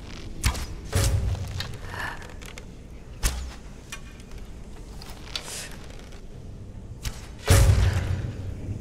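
Arrows thud into a target.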